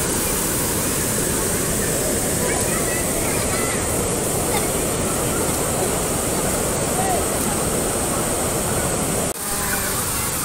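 Shallow water rushes and splashes over rocks.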